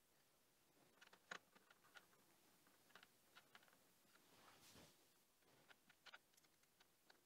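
Small metal parts click and tap softly close by.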